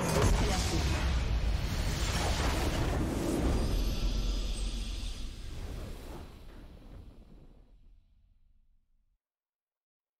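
A triumphant game fanfare swells and slowly fades away.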